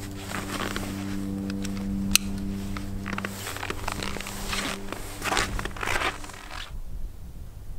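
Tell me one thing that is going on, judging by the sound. A heavy jacket rustles close by.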